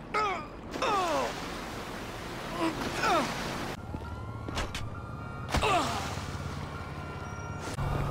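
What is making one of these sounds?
Water splashes as a man swims.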